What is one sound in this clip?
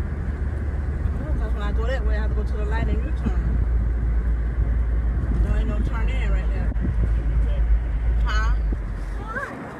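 A woman talks close by inside the car.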